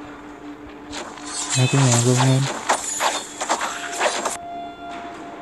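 Sword blows and spell blasts clash in quick succession.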